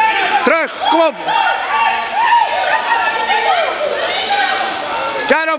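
Young boys shout excitedly in an echoing pool hall.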